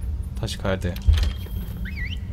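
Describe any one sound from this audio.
A short game menu chime sounds.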